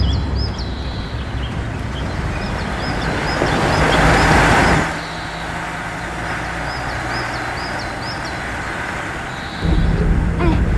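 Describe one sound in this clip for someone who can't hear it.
A car engine rumbles as the car drives along a dirt track and passes close by.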